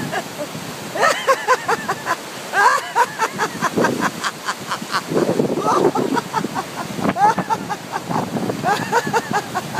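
A man shouts and laughs loudly close to a microphone.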